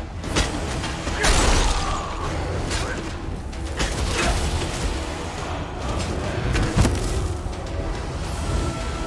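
Weapons clash and magic blasts crackle in a fight.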